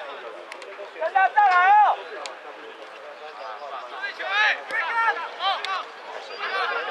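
Young men shout loudly across an open field.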